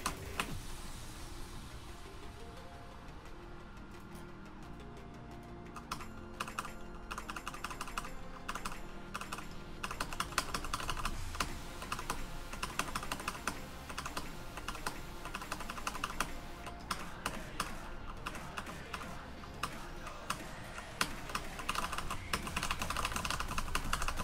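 Keyboard keys clatter quickly.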